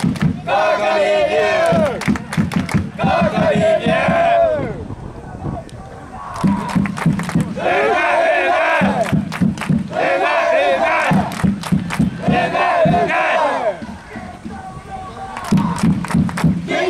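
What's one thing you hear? A large crowd of supporters chants loudly in an open stadium.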